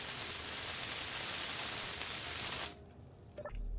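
A welding tool hisses loudly and steadily.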